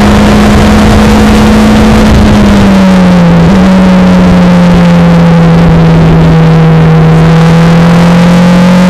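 Wind rushes over an open cockpit.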